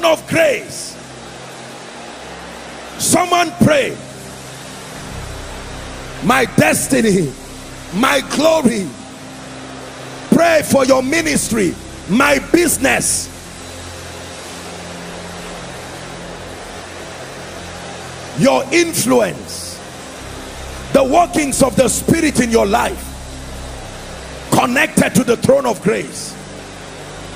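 A man preaches loudly through loudspeakers in short, forceful bursts, echoing in a large hall.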